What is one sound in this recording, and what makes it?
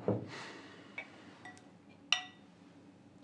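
Dishes clink softly on a table.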